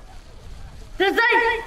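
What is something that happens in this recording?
A man shouts a loud command outdoors.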